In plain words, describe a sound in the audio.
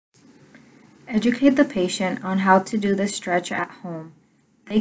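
A young woman speaks clearly and calmly, close by.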